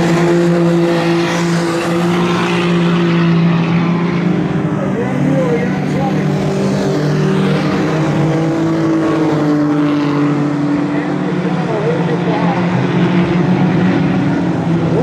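Race car engines roar and whine steadily around a dirt track.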